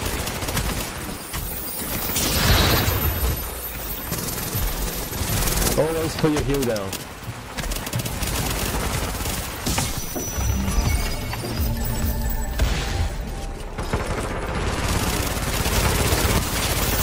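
Rapid gunfire rattles and bursts.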